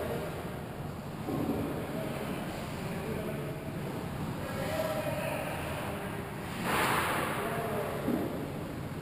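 Skate blades scrape and hiss across ice in a large echoing hall.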